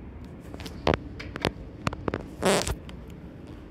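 A finger presses an elevator call button with a soft click.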